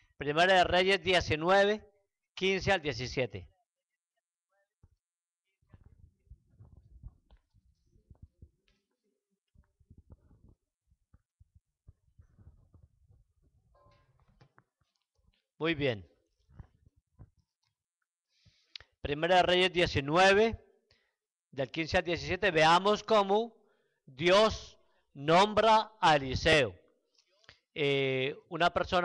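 A man speaks through a microphone with animation, with pauses between phrases.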